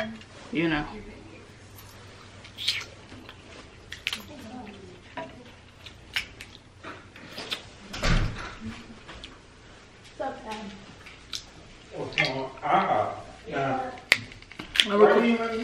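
Crab shells crack and snap as they are broken apart.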